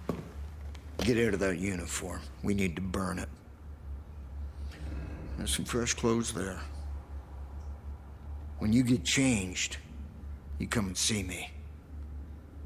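An elderly man speaks in a low, gruff voice, close by.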